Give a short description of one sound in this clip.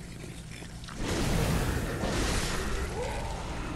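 A blazing torch whooshes and roars with fire.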